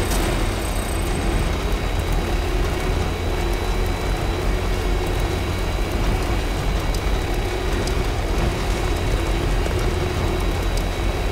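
Tyres hiss on asphalt.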